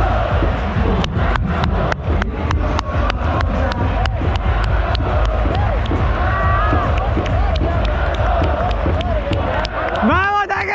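A player claps his hands in a steady rhythm.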